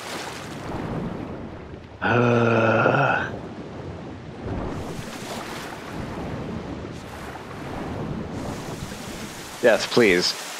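Water splashes and churns as a swimmer moves through it.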